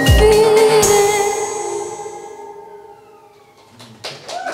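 A woman sings into a microphone, her voice ringing out and fading.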